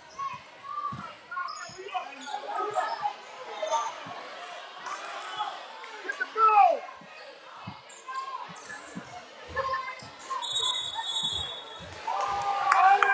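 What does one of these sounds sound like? A basketball bounces on a hardwood floor.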